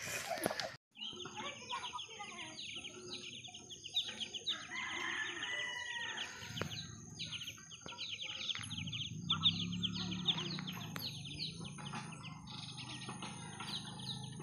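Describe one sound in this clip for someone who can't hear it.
Ducklings peep rapidly and continuously.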